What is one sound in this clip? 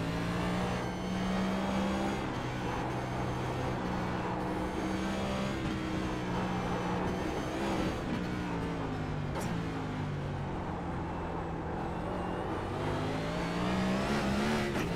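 A racing car engine roars loudly, its pitch rising and falling with gear shifts.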